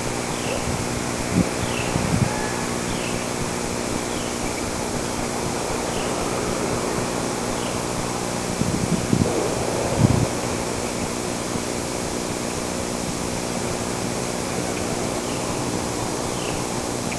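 Wind blows softly through bare trees outdoors.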